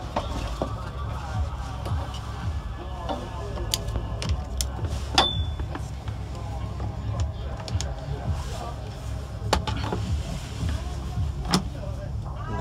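Plastic clamps click onto a battery terminal.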